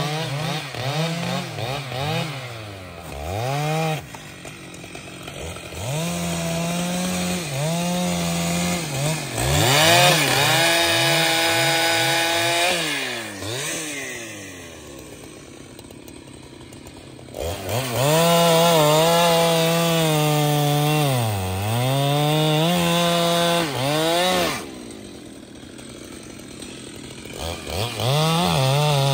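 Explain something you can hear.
A chainsaw engine revs up and down loudly, idling between bursts.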